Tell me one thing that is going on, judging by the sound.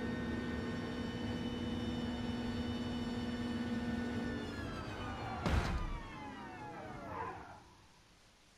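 A car engine roars at a steady high pitch, then winds down.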